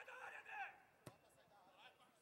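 A football is kicked hard with a dull thump.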